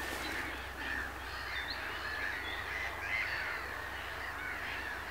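Gulls call repeatedly nearby.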